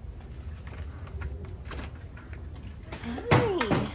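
A door latch clicks and a door swings open.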